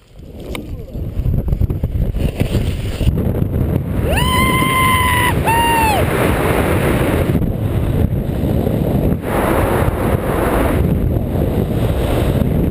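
Wind rushes loudly and buffets steadily.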